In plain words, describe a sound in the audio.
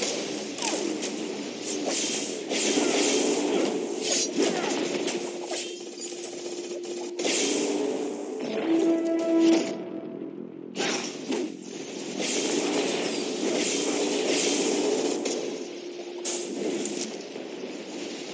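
Game spells and weapons blast and clash in a fight.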